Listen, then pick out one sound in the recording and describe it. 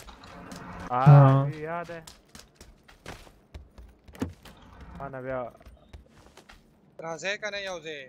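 Footsteps thud on the ground and on wooden floorboards.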